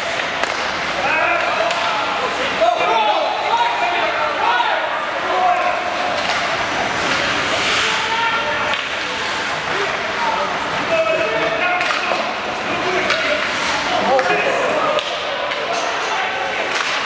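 Adults chat nearby in a large echoing arena.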